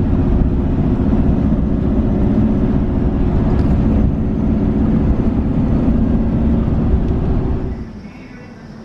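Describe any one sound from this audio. A vehicle drives along a road with a steady rumble.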